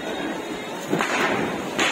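A firework fuse hisses and sputters.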